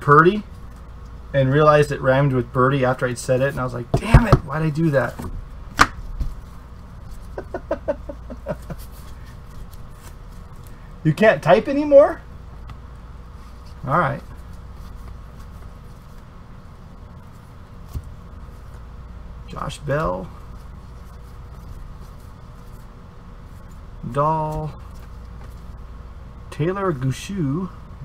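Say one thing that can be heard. Trading cards softly rustle and slide against each other.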